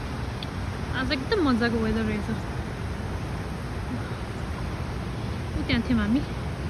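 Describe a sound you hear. A young woman speaks briefly, close by.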